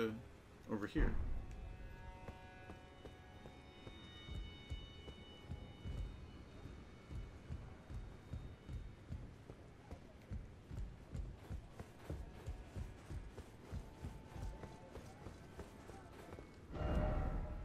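Footsteps thud steadily on stone.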